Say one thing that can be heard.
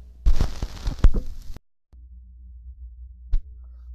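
A tone arm knocks as it lifts off a record.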